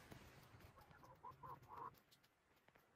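A hen clucks softly nearby.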